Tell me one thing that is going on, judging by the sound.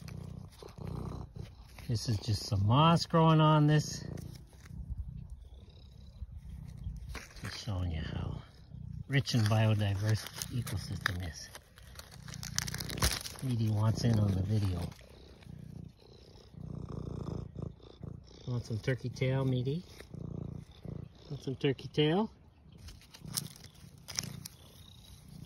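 Dry leaves and twigs rustle as a hand moves through them.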